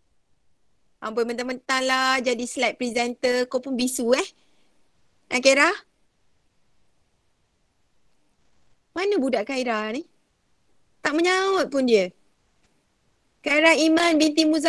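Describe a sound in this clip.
A young woman speaks calmly through an online call microphone, in short bursts with pauses.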